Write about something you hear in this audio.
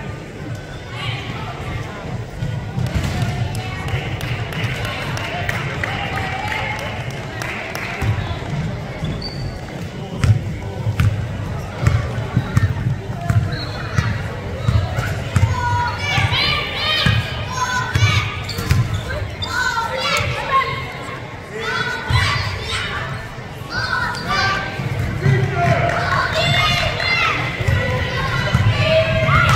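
Spectators and players shout and cheer from the sidelines.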